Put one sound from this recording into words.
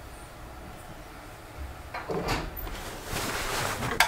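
A lift's outer door slides open.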